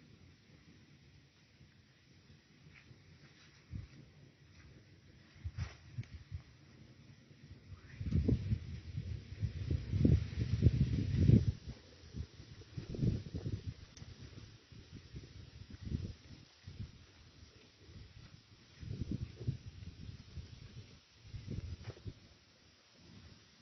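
A fire crackles softly close by.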